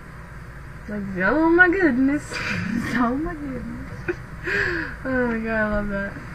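A teenage girl giggles close to a webcam microphone.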